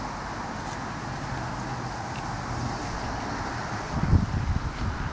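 Wind blusters across an open field, gusting harder near the end.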